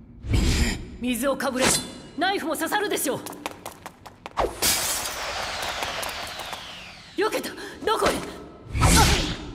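A young woman speaks with strain and anger.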